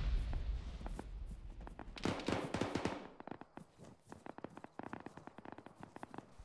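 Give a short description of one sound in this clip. Footsteps tread quickly over grass.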